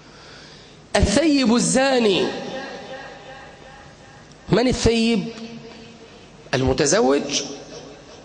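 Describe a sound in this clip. A man preaches loudly and with passion through a microphone and loudspeaker, echoing in a large hall.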